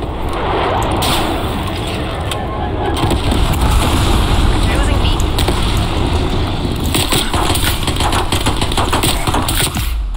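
Gunshots crack and echo.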